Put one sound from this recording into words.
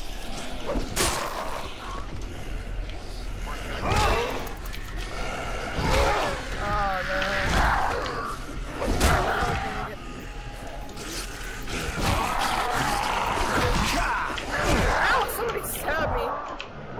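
Heavy blows thud against bodies.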